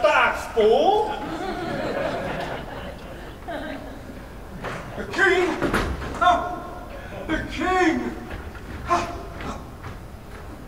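A man speaks with animation into a microphone, in a large echoing hall.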